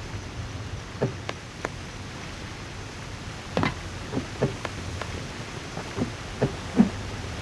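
Footsteps clank on a metal grate.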